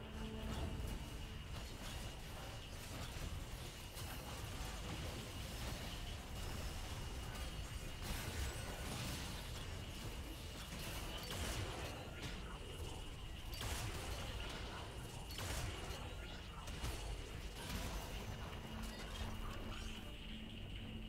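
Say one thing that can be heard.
Game spell effects crackle and burst in a battle.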